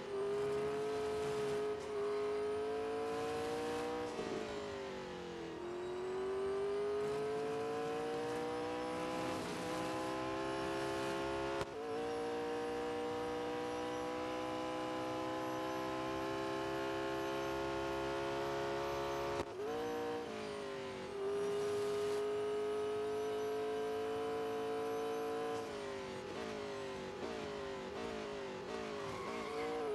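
A race car engine roars at high revs, rising in pitch as it speeds up and dropping sharply at each gear change.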